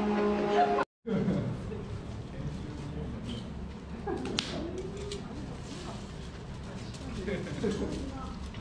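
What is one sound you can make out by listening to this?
A man and a woman talk quietly nearby.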